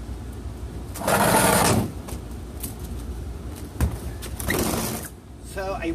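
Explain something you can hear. A metal cabinet scrapes across a concrete floor.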